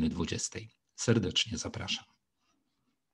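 A middle-aged man speaks calmly and closely into a microphone.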